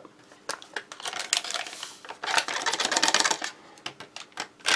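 Powder pours from a packet into a mug.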